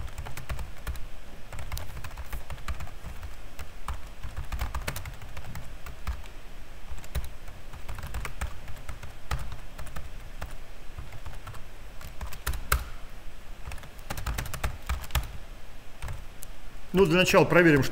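Keys clatter on a keyboard in quick bursts of typing.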